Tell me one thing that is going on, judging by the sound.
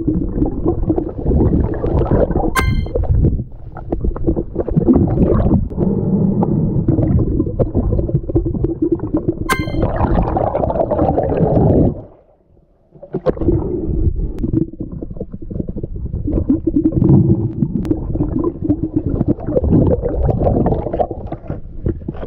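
Water rumbles and gurgles around a swimmer underwater.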